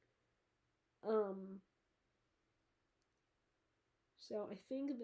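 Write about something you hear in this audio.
A girl reads aloud close by, in a calm voice.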